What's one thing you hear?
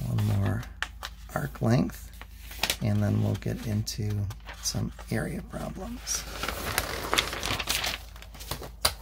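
Paper pages rustle and crinkle as they are turned.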